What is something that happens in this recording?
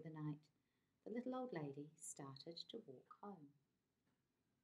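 A woman reads a story aloud calmly, close by.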